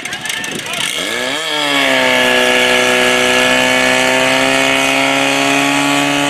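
A pump engine revs up, then runs at a steady high pitch.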